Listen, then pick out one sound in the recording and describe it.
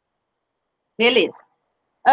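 A woman speaks briefly through an online call microphone.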